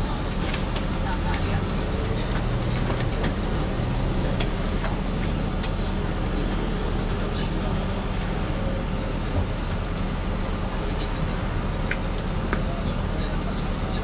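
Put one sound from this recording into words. A bus engine hums low and steady as the bus drives.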